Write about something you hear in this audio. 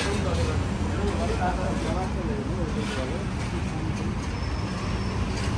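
A city street hums with traffic nearby.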